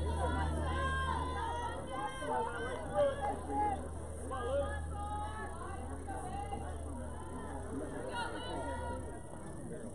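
Young women shout and cheer from around an open field.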